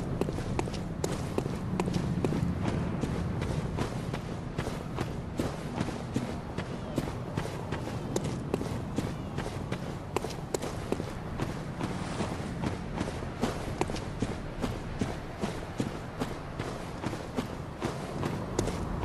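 Footsteps crunch quickly through grass and earth.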